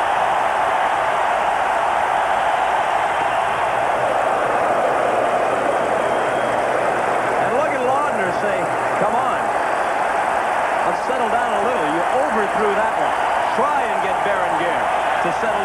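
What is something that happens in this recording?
A large crowd roars and cheers in an echoing domed stadium.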